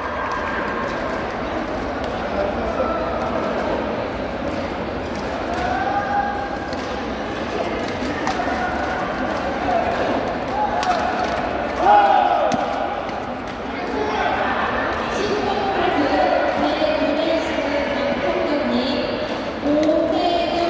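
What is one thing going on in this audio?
A crowd of people chatter and call out throughout a large echoing hall.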